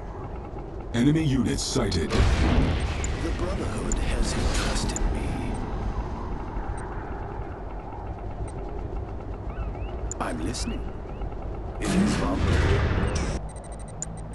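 Computer game sound effects rumble and whoosh.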